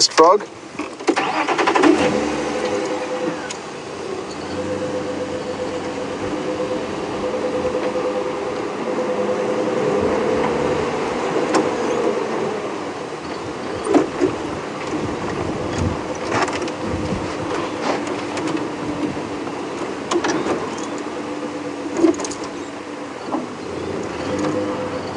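A vehicle engine idles and runs steadily close by.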